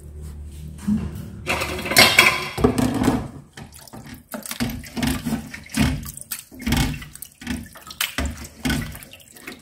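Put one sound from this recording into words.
Gloved hands slosh and splash meat around in a bowl of water.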